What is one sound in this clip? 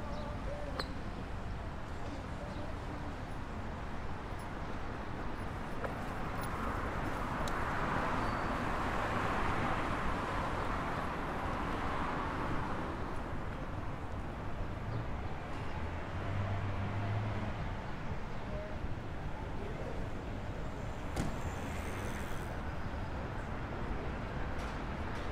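City traffic hums steadily along a wide street.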